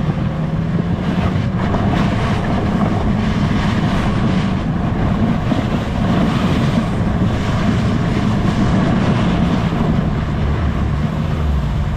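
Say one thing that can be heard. A sled's runners hiss over snow.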